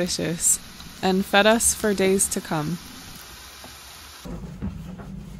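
Fish sizzles in a hot frying pan.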